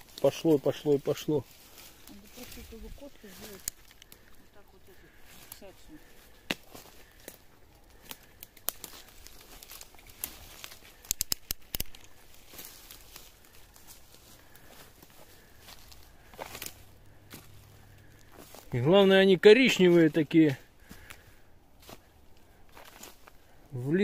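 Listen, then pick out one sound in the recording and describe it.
Dry leaves rustle and twigs crackle underfoot as someone walks.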